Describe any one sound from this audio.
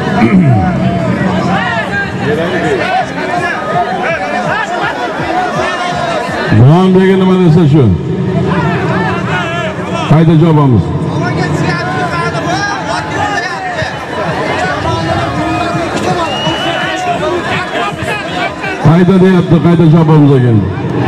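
A large outdoor crowd of men chatters and calls out.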